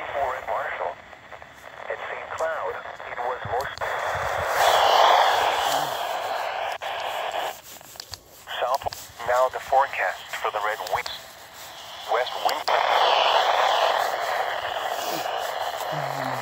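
Buttons click on a weather radio.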